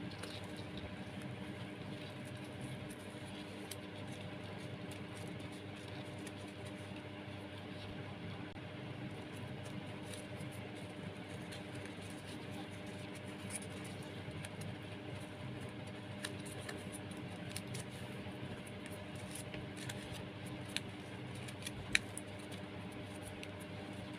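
Dry twine rustles and crackles softly between fingers.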